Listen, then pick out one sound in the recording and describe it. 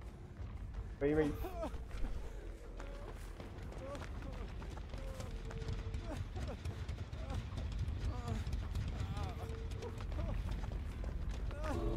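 Footsteps run quickly through grass and over wooden boards.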